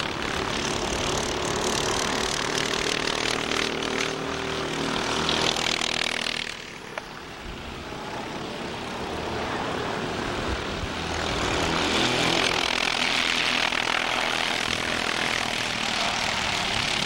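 Small kart engines buzz and whine loudly as karts race past outdoors.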